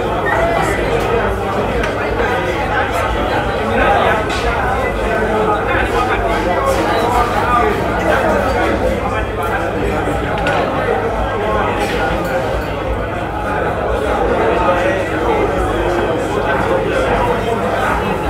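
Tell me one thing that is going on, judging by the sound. A large crowd of men and women chatters loudly all around.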